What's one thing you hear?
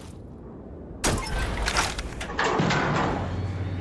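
A button clunks as it is pressed.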